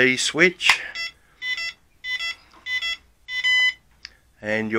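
A remote controller beeps in short, repeated electronic tones.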